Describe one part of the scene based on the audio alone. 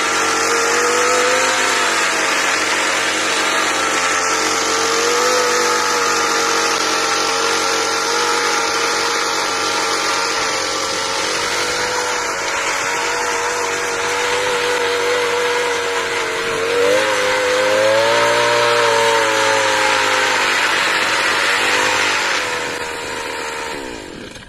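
A petrol string trimmer engine whines steadily close by, its pitch wavering as it works.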